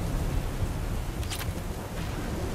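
A gunshot cracks in the distance.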